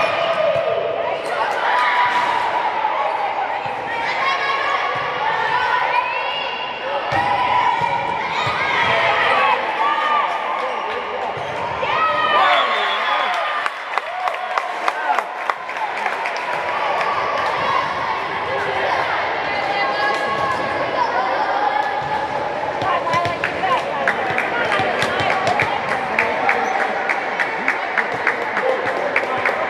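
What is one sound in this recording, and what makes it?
Girls shout and call out across a large echoing hall.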